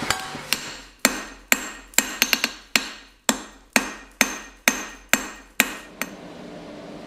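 A hammer strikes hot metal on an anvil in sharp ringing blows.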